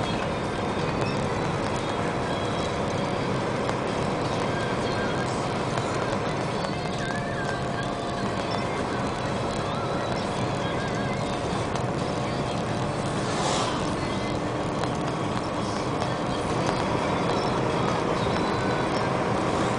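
A vehicle's engine hums steadily as it drives along a road, heard from inside.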